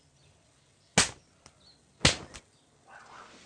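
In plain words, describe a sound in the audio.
Loud sharp bangs ring out.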